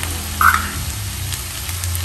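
A gas burner clicks as it is lit.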